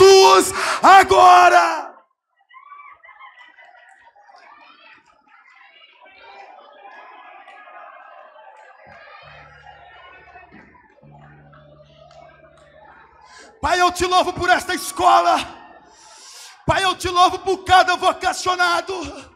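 A large crowd of men and women pray aloud together, murmuring in a large echoing hall.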